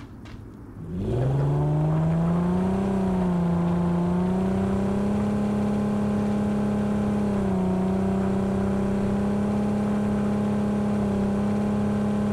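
A vehicle engine starts and roars steadily as it drives.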